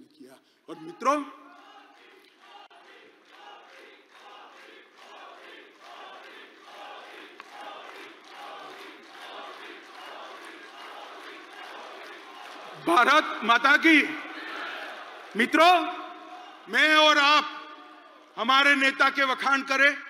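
A large crowd cheers and chants together.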